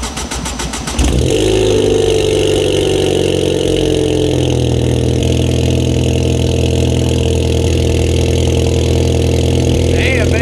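A car engine starts and idles with a steady low exhaust rumble.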